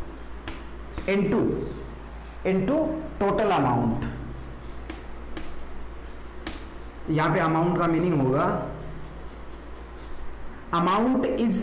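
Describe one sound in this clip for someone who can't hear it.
A man speaks calmly and clearly, close by, in short bursts.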